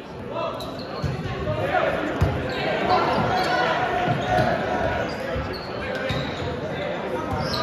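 A crowd of young men chatters and shouts in a large echoing gym.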